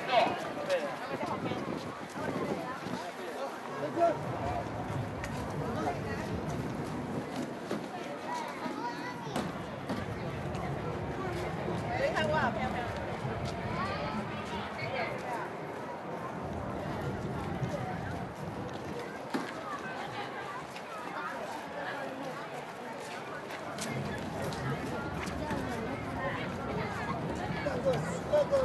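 A crowd of people chatter nearby outdoors.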